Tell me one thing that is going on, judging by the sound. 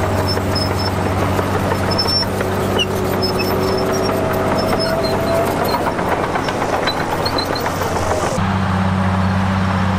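Dirt and rocks slide out of a dump truck bed with a rushing rumble.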